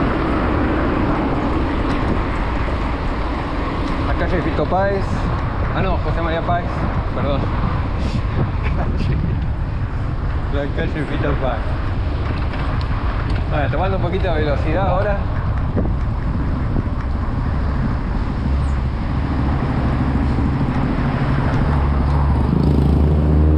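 Bicycle tyres hum on a paved street.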